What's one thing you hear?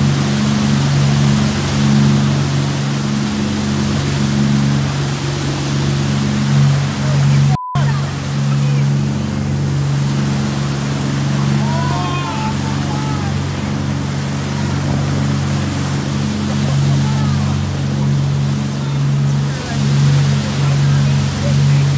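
Water rushes and splashes loudly in the boat's wake.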